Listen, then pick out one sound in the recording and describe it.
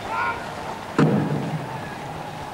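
A large drum booms once.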